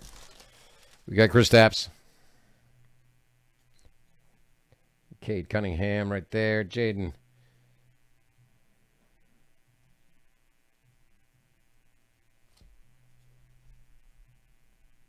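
Trading cards rustle and slide as they are flipped through by hand.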